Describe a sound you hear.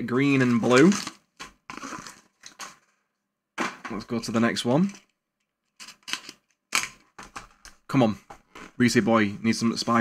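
Cardboard packaging rustles and taps in hands.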